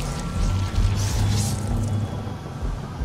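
An explosion booms and crackles with fire.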